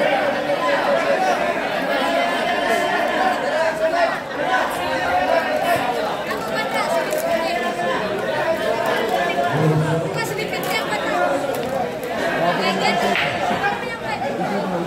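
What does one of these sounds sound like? A crowd of men chatters loudly and steadily nearby.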